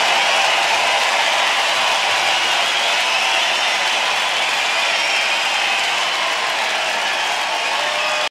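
A huge crowd cheers and roars loudly in a large arena.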